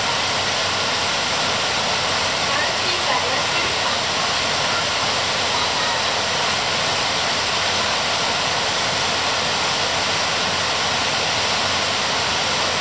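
Heavy rain pours steadily onto leaves outdoors.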